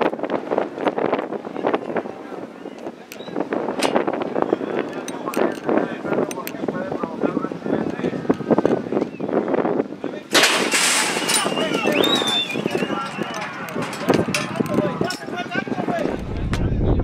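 Men shout and call out nearby outdoors.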